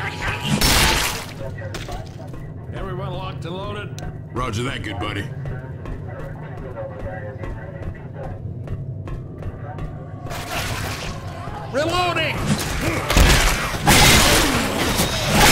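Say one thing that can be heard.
A heavy blade hacks into flesh with wet thuds.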